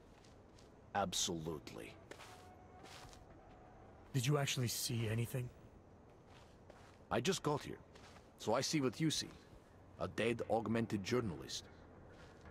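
A young man answers quickly with animation.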